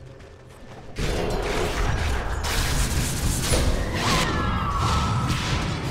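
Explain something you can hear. Game spell effects crackle and explode in a loud battle.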